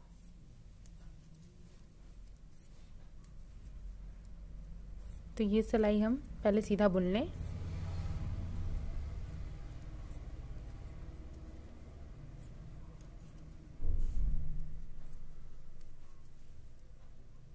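Knitting needles click and tap softly against each other.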